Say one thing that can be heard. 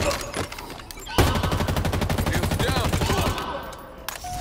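An energy weapon fires with crackling, buzzing zaps.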